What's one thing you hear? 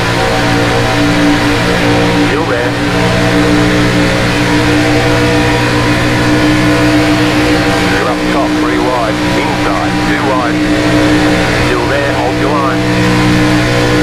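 Other race cars roar close by.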